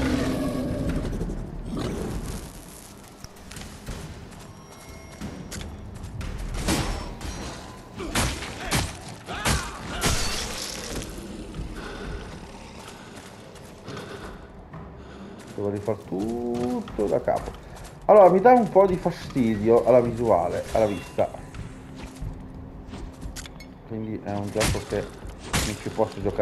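Heavy armored footsteps clank on stone.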